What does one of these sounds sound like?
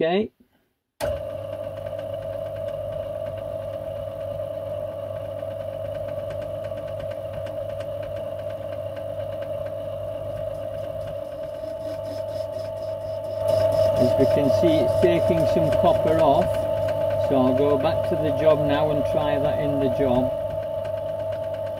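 A lathe motor hums steadily as the chuck spins.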